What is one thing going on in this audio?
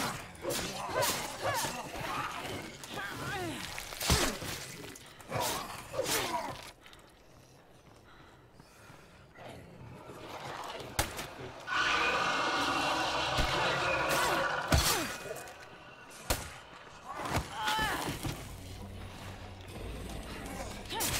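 Zombies snarl and groan close by.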